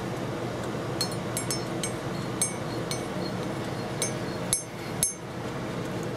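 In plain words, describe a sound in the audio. A spoon clinks against the inside of a mug while stirring.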